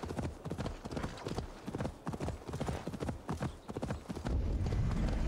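Horse hooves thud on the ground.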